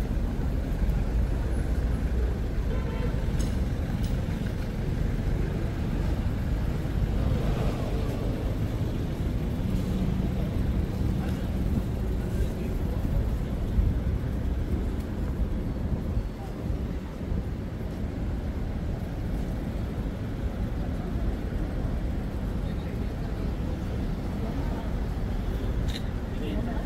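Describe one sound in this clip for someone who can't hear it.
Traffic rumbles steadily along a city street outdoors.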